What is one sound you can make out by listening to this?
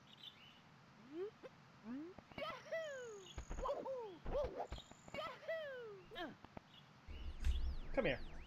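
Playful video game jump sounds and bouncy effects play in quick bursts.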